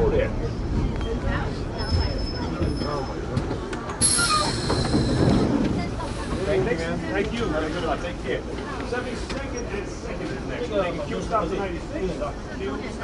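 A subway train rumbles slowly along the track.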